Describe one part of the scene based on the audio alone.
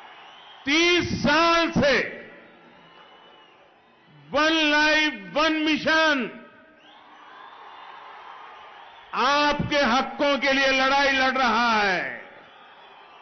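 An elderly man gives a forceful speech through a loudspeaker, in short loud bursts.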